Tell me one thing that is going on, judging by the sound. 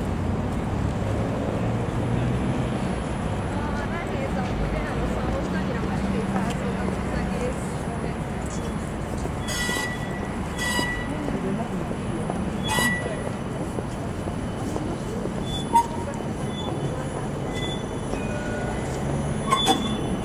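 A tram rolls slowly along the tracks with a low rumble.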